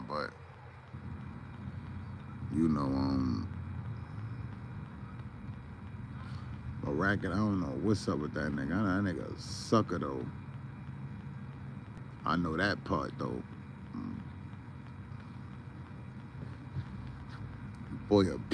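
A young man talks close to a phone microphone in bursts, with pauses.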